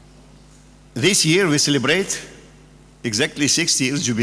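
An elderly man speaks calmly into a microphone over loudspeakers in a large room.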